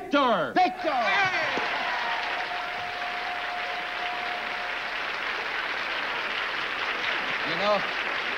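A studio audience applauds loudly.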